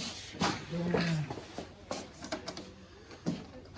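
A door opens with a clunk.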